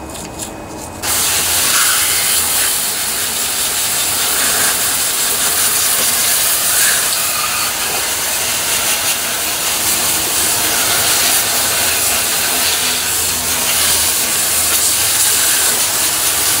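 A hose sprays a hard jet of water against metal.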